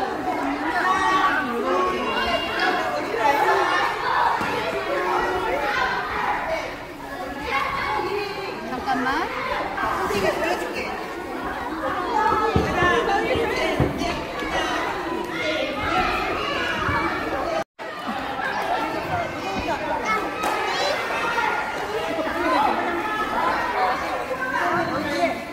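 A young woman talks with children close by.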